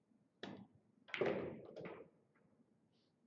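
Billiard balls clack against each other.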